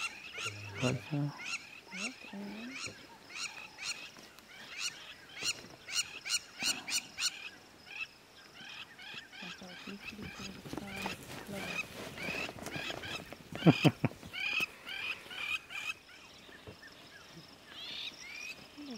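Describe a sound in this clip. Wild dogs give high, chirping twitters over and over.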